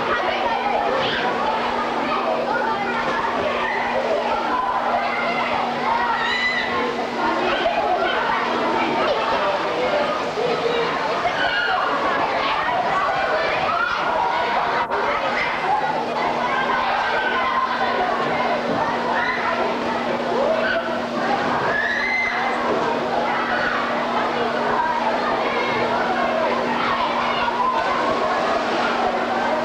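A crowd of children and adults shouts and laughs in a large echoing hall.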